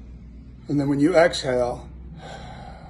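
An older man speaks calmly and slowly, close by.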